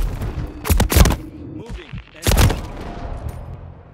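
Gunfire and explosions crack and boom in a video game.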